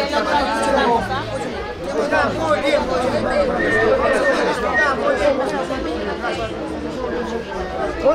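An adult woman talks animatedly nearby.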